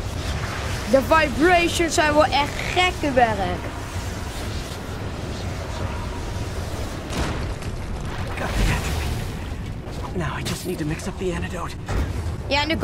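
A boy speaks excitedly into a close microphone.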